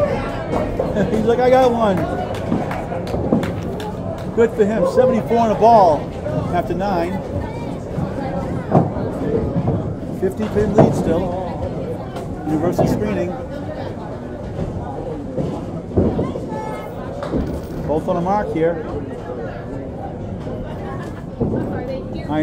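Men talk and call out nearby in a large echoing room.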